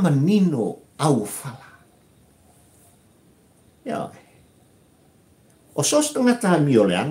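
An elderly man speaks with animation close to a microphone, pausing now and then.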